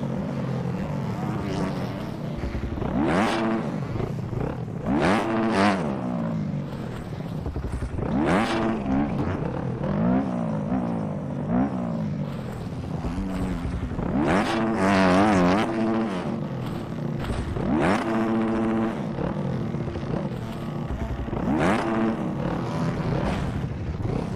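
A dirt bike engine revs up and down repeatedly.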